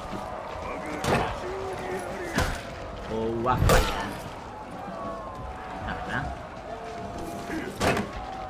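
Swords and shields clash and thud in a fight.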